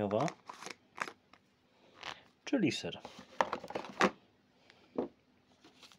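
A small jar is set down in a cardboard box with a light knock.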